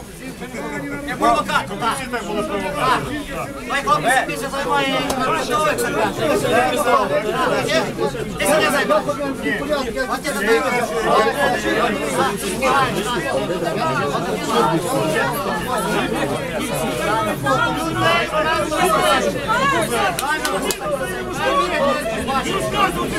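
A man shouts angrily close by.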